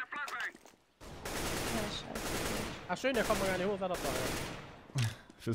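A rifle fires several rapid bursts.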